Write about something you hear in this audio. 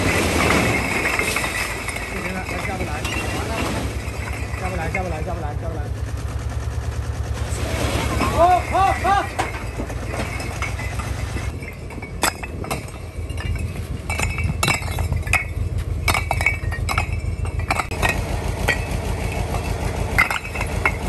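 A diesel truck engine idles with a low, steady throb.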